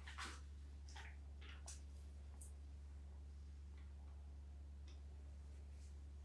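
A hand softly rustles through a dog's fur.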